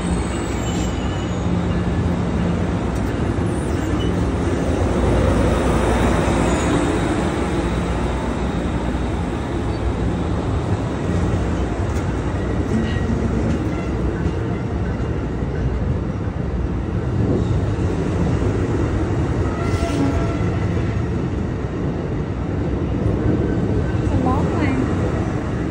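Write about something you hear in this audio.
A passenger train rumbles slowly past, close by.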